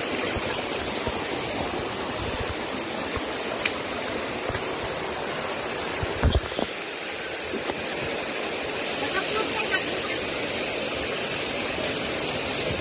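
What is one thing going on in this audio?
A stream rushes steadily over rocks nearby.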